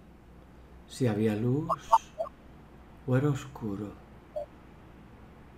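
A middle-aged man speaks briefly and calmly over an online call.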